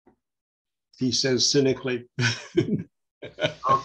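An older man speaks calmly through a microphone on an online call.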